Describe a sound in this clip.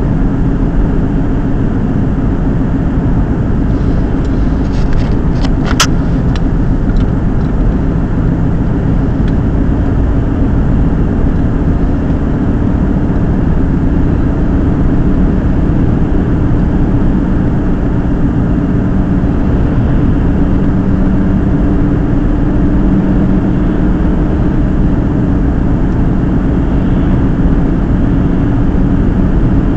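A car's engine hums steadily and tyres roll on the road from inside the car.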